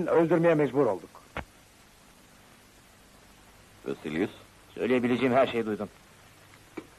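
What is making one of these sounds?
A man speaks firmly and clearly.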